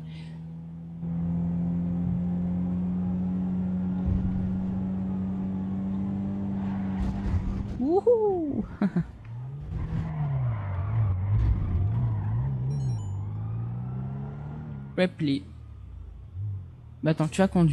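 A car engine drones steadily at speed, then revs up and down.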